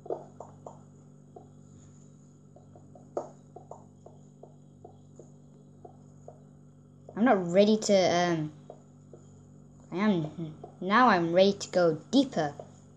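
Fingertips tap lightly on a glass touchscreen.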